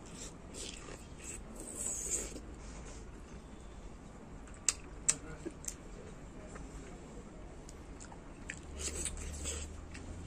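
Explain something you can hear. A man slurps and sucks at food with his lips.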